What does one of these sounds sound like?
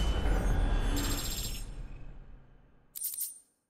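A bright game chime rings out and fades away.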